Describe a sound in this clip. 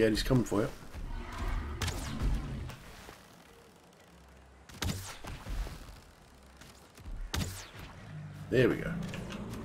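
Weapons strike a creature with sharp thuds.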